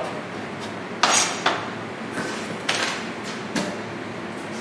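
A knife taps on a cutting board.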